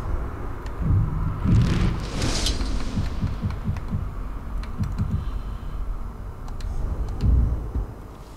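Short soft clicks tick as menu items are selected.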